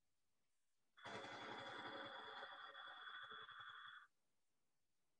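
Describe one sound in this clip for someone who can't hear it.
A lathe hums and whirs as it cuts metal, heard through an online call.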